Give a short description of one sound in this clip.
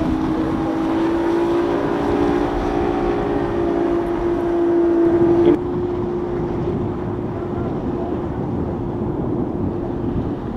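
A motorboat engine drones loudly as the boat speeds past.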